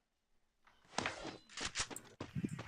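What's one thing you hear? Footsteps run across grass.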